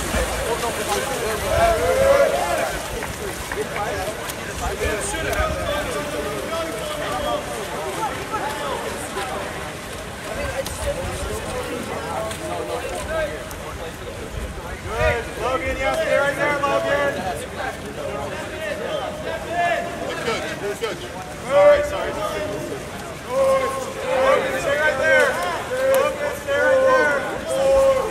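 Swimmers splash and thrash through water.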